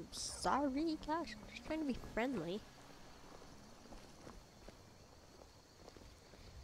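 Footsteps crunch on a stone path.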